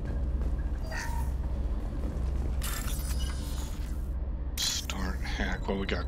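Electronic interface tones chime and whoosh.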